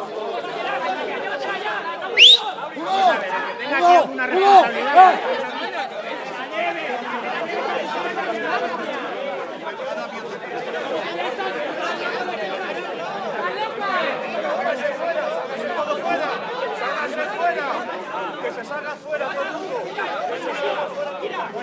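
A crowd of young people chatters and shouts outdoors.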